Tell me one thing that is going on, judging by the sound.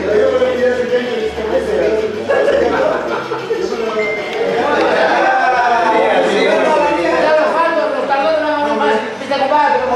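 Several men talk over each other nearby.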